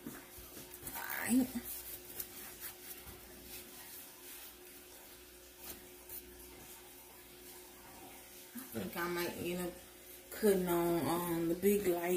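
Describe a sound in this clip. A woman speaks casually, close by.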